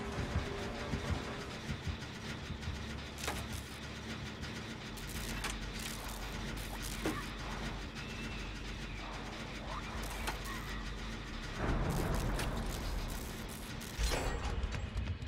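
A machine clanks and rattles while being repaired.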